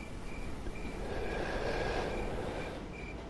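A man exhales smoke with a soft breath.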